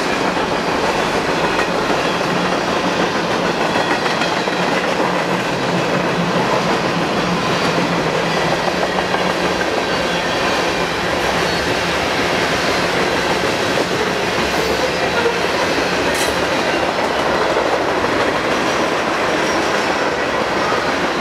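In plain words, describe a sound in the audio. A passing train rumbles and clatters loudly along the tracks.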